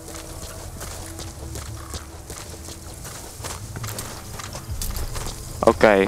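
Soft footsteps rustle through grass.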